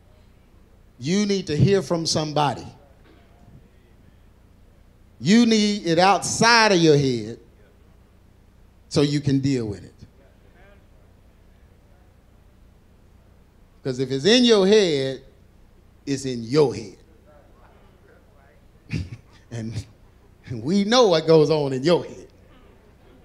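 A man speaks with animation into a microphone, heard through loudspeakers in a large echoing hall, in short bursts with pauses.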